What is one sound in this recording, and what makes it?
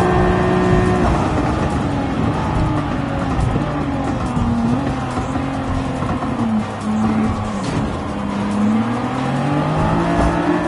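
A car engine drops in pitch as the car brakes, then revs up again.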